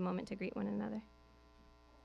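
A young woman sings into a microphone.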